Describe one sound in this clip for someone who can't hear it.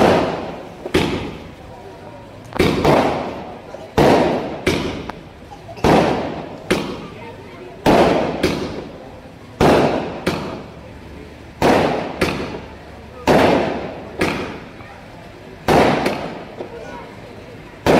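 Fireworks crackle and sizzle after each burst.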